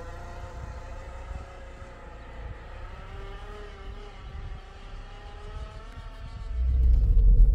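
A car engine hums as the car drives up a dirt road outdoors.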